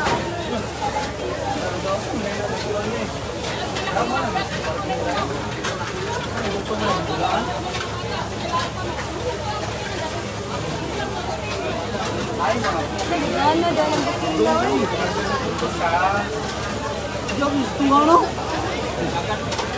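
Water sprays from a fire hose.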